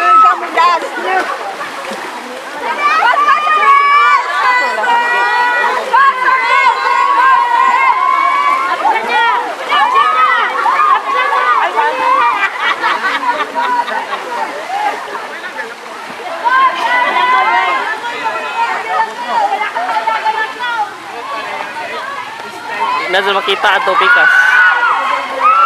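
Swimmers splash and churn through the water.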